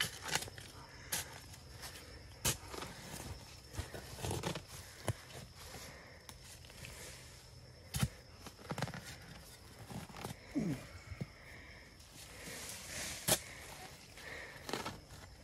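Dry leaves rustle underfoot.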